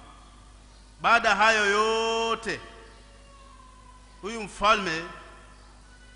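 A man speaks in a drawn-out, chanting voice through a microphone in an echoing room.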